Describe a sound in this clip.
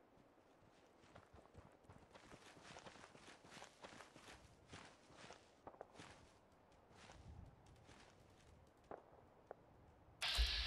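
Footsteps rustle through dry grass and brush.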